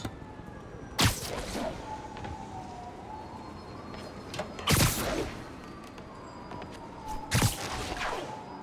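Web lines shoot out with sharp snapping thwips.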